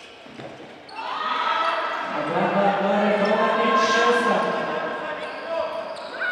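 A crowd of spectators chants and cheers loudly in a large echoing hall.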